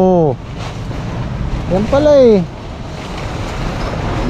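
A plastic tarp rustles and crinkles as it is handled.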